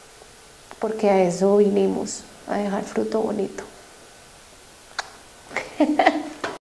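A young woman speaks calmly and expressively into a nearby microphone.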